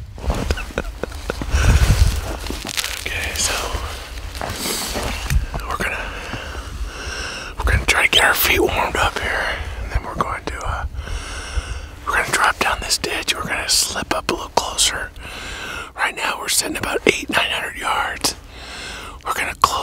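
An elderly man talks cheerfully close to the microphone.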